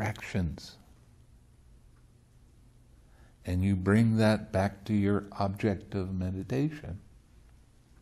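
An elderly man speaks calmly and slowly, close to a microphone.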